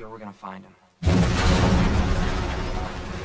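A loud explosion booms suddenly.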